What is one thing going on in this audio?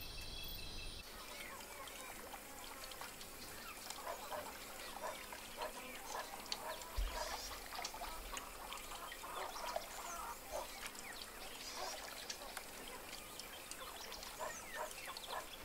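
Chickens cluck and chirp nearby outdoors.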